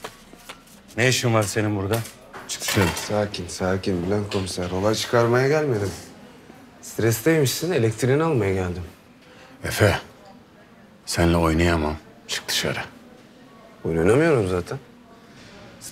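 A middle-aged man speaks calmly and close by.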